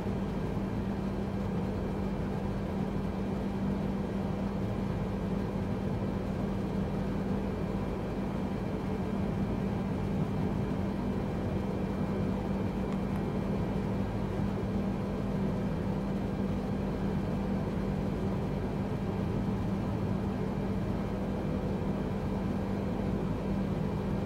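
Jet engines hum steadily with a low drone.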